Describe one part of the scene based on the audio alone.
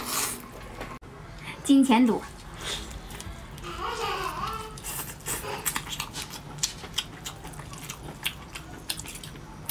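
A woman chews and smacks on chewy food close up.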